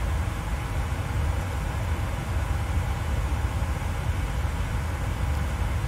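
Jet engines hum steadily with a low rumble, heard from inside a cockpit.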